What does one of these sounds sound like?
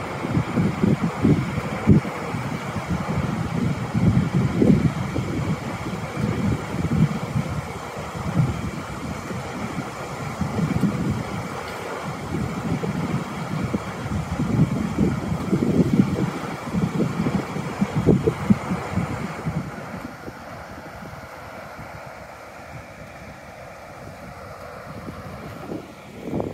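Water rushes steadily over a weir.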